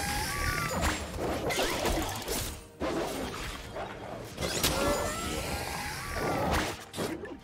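Spell and weapon effects crackle and clash in a fast video game fight.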